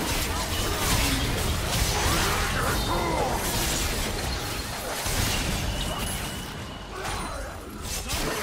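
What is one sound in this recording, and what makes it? Magic spells burst and crackle in a fast fight.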